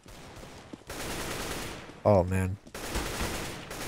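A rifle fires a burst of gunshots.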